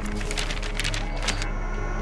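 A paper page rustles as a book's page is turned.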